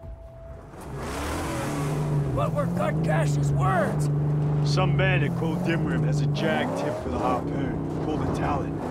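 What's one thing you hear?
A car engine roars and revs steadily.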